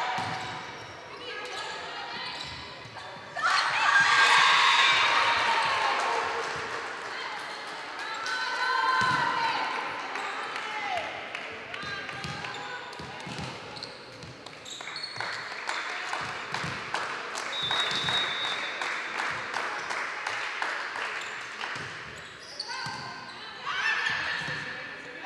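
A volleyball smacks against hands.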